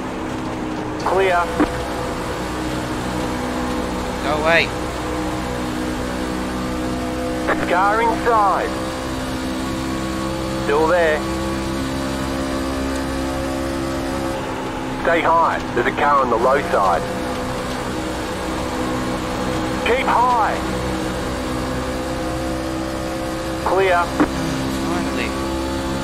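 A race car engine drones steadily at high speed.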